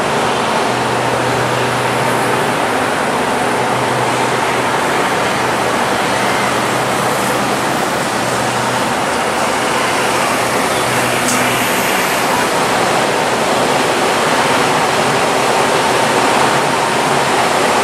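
A train rumbles steadily past close by.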